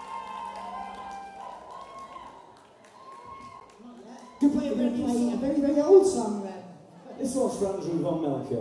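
A rock band plays live on stage.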